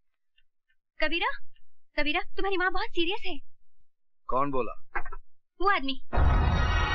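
A woman speaks pleadingly close by.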